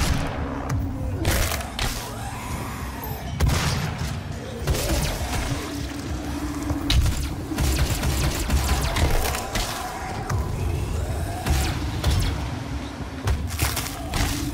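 Creatures growl and snarl.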